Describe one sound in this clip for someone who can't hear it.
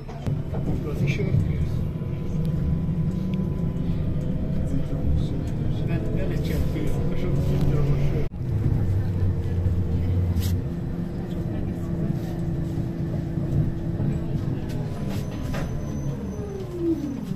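A tram rumbles and rattles steadily as it rolls along.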